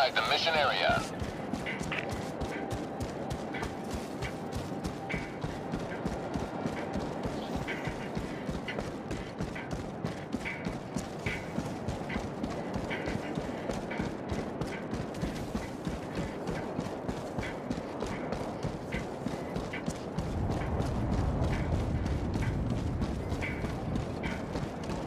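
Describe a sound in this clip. Footsteps crunch quickly over rocky ground.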